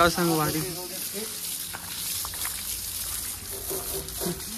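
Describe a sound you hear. Water sprays hard from a hose and splashes onto a tyre.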